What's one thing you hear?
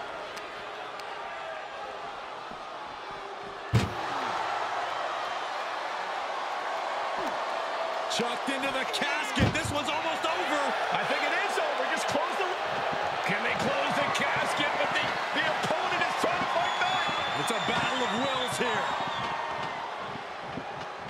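A crowd cheers and roars throughout.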